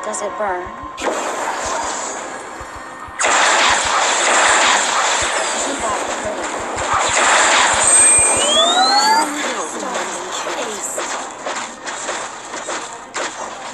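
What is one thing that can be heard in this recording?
Magic blasts whoosh and crackle in a fantasy battle.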